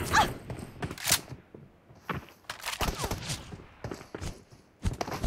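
A weapon swings and strikes with sharp thuds.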